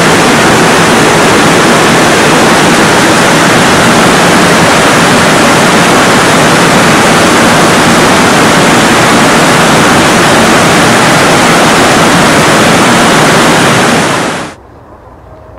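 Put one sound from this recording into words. Water rushes loudly over stones.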